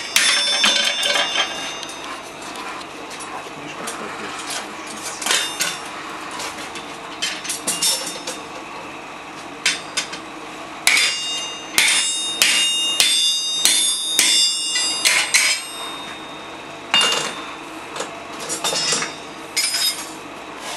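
A hammer rings sharply on hot metal on an anvil.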